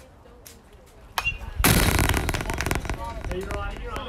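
A bat cracks against a baseball in the distance.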